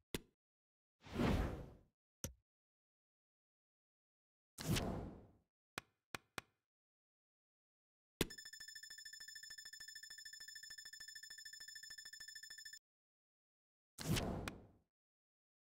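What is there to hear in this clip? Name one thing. Soft whooshes sweep between menu pages.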